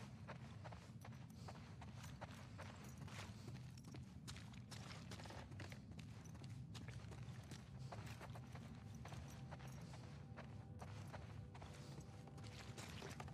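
Footsteps tread on a wooden floor indoors.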